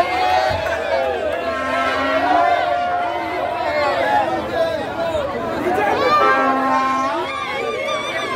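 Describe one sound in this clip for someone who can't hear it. A large crowd of men and women sings and chants loudly outdoors.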